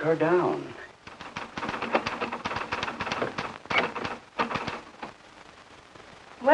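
A typewriter clacks rapidly.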